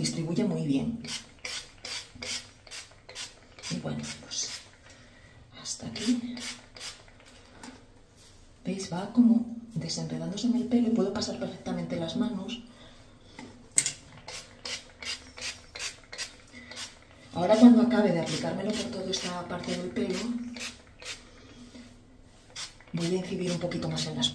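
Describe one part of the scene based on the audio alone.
A spray bottle hisses in quick bursts.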